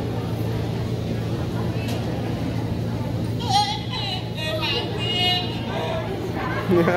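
A crowd murmurs steadily in a large open space.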